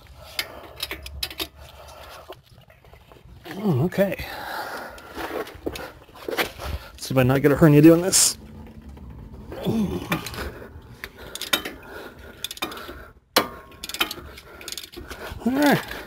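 A metal wrench clicks and scrapes against a brake caliper.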